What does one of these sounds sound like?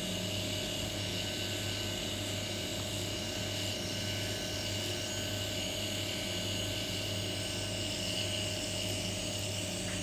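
A permanent makeup pen machine buzzes steadily.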